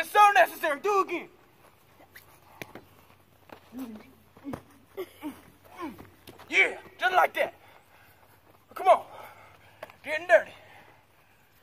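A young man shouts with animation nearby.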